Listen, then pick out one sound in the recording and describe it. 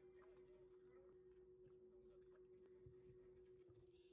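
Chopsticks click against a bowl.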